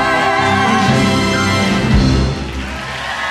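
A cast sings loudly together, ending on a big final note.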